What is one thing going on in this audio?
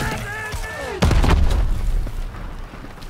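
A loud explosion booms and rumbles nearby.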